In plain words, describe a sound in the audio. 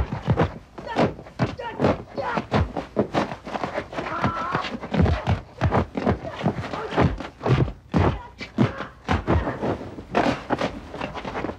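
Punches and kicks land with sharp thuds during a fight.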